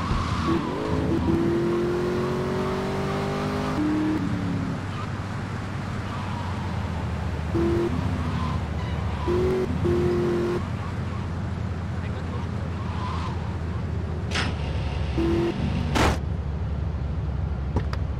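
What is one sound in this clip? A car engine roars steadily as a sports car drives along.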